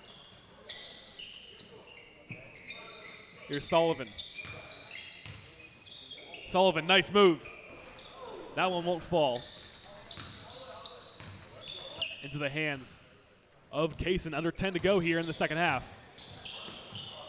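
Sneakers squeak sharply on a wooden court in an echoing gym.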